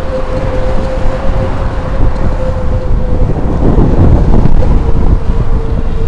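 A bus drives past nearby.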